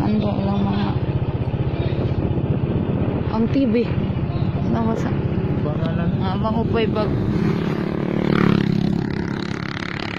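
A small motorcycle engine runs while riding along.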